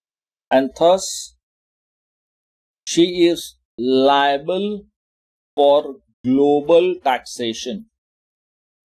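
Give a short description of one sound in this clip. A man speaks calmly and slowly, close to a microphone, in short phrases.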